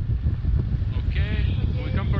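A young woman speaks close by, partly drowned by the wind.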